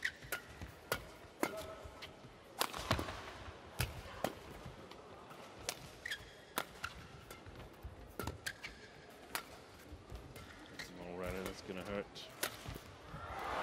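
Rackets smack a shuttlecock back and forth in a quick rally, in a large echoing hall.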